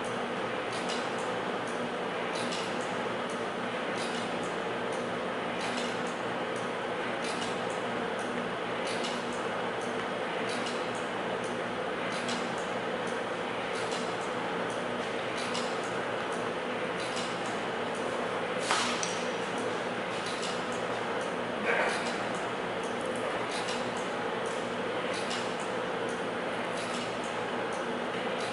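Electrical equipment hums steadily.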